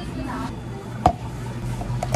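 A plastic cup knocks down onto a counter.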